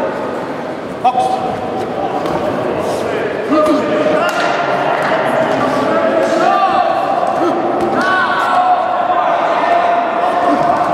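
Boxing gloves thud against bodies in sharp blows.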